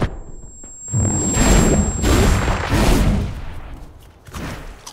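A magical burst whooshes and roars loudly.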